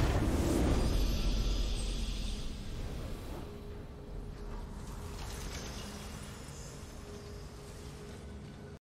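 A bright, triumphant game fanfare swells and slowly fades.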